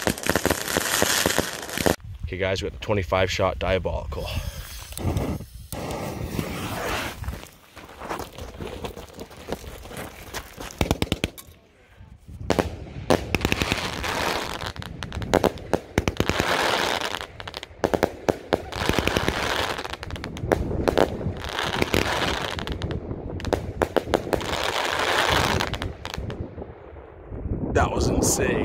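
Fireworks crackle and pop in rapid bursts overhead.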